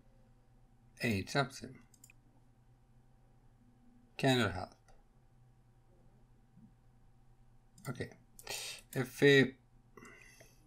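A young man speaks in short bursts into a microphone, close and animated.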